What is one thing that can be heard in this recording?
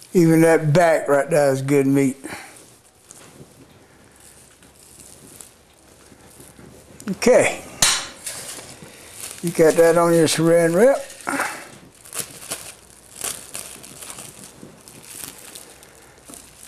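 Hands pull apart cooked meat with soft tearing and squelching sounds.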